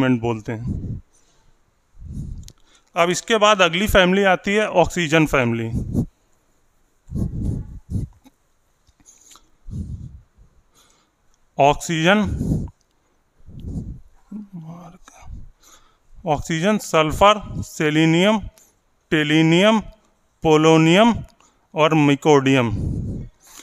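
A man speaks calmly and clearly through a close microphone, in bursts with pauses.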